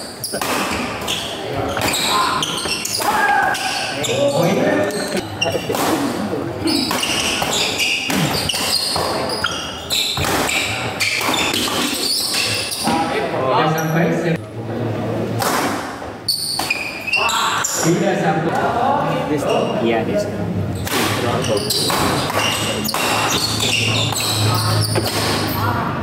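Men call out and chatter loudly in an echoing hall.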